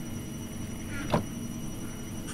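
A game menu clicks open.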